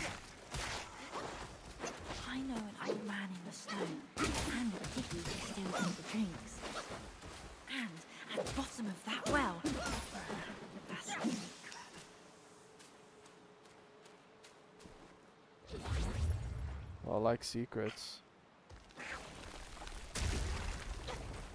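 Heavy blows and staff strikes thud and crack in a fight.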